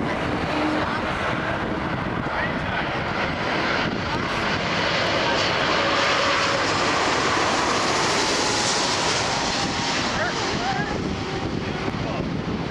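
A jet airliner's engines roar loudly overhead as it flies low and passes by.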